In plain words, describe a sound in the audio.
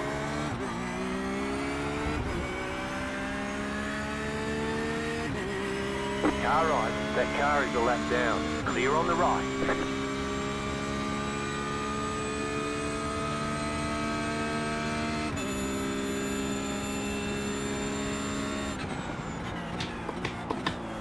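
A racing car engine roars at high revs, climbing through the gears.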